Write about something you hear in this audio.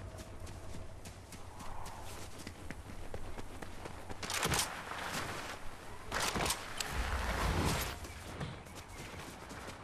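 Footsteps patter quickly over grass as a game character runs.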